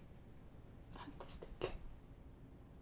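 A middle-aged woman speaks a short word softly, close by.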